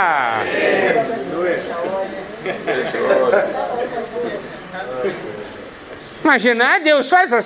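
An elderly man speaks calmly to an audience through a microphone.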